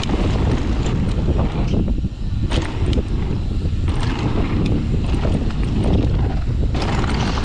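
A bicycle chain and frame clatter over bumps.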